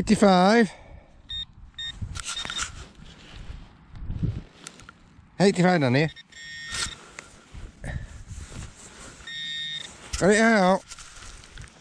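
A metal detecting pinpointer beeps with a warbling tone as it probes soil.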